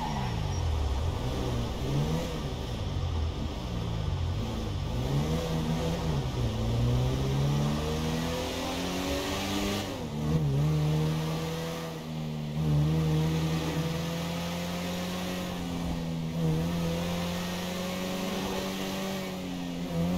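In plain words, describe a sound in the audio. A car engine revs up and down as the car shifts through gears.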